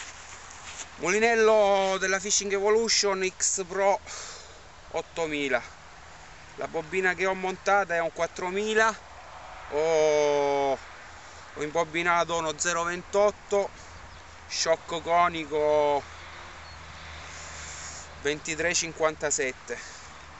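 An adult man speaks calmly, close to the microphone.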